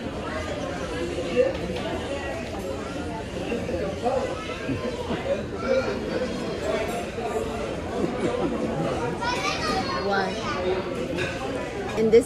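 A woman sips a drink through a straw.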